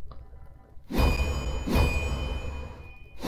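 A sharp whooshing slash rings out from a game.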